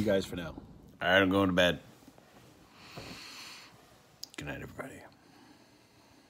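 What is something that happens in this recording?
A young man speaks softly and sleepily, close by.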